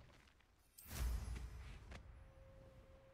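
A rushing whoosh sweeps up as a broom takes off into the air.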